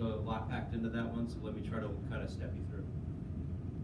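A man speaks through a microphone in a large room.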